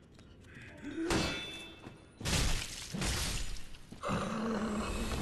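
A sword swings and strikes with heavy metallic blows.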